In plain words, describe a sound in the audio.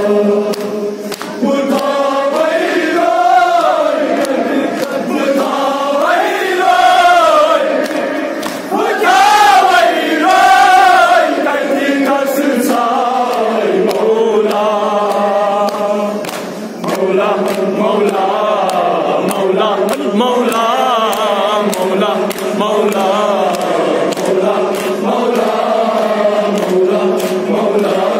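A young man chants loudly and rhythmically into a microphone, heard through a loudspeaker.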